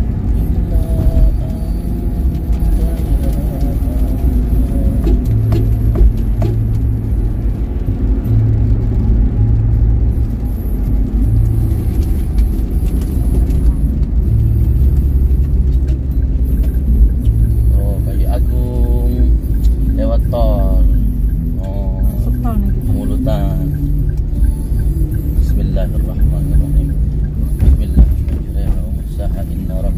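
A car drives along a highway with a low, steady road rumble.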